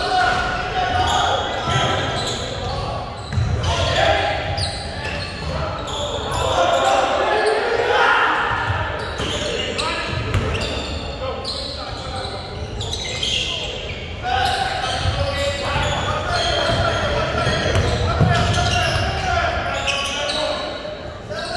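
Spectators talk and call out in an echoing gym.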